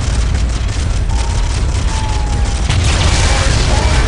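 A flamethrower roars.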